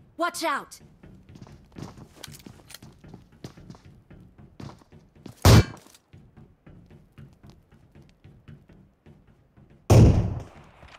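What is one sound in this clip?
Explosions boom and fire crackles in a video game.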